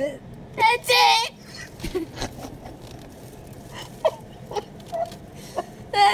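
A young girl squeals and laughs excitedly nearby.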